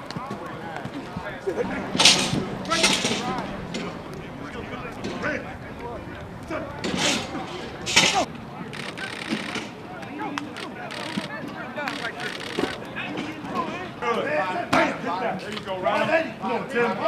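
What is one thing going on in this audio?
Several young men talk and call out outdoors.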